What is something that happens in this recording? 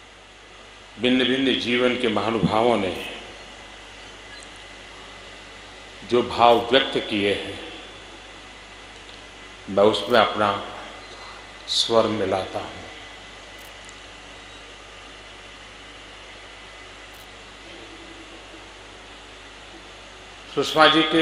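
An elderly man speaks slowly and deliberately into a microphone, with long pauses, in a large echoing space.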